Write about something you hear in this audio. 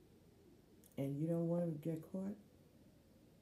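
A woman speaks briefly and calmly close to a microphone.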